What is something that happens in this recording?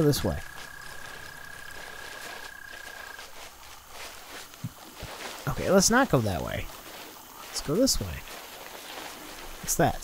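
A small dinosaur lets out sharp, warbling screeches.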